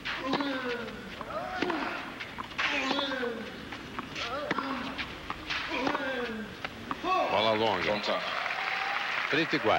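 A tennis ball is struck sharply by a racket.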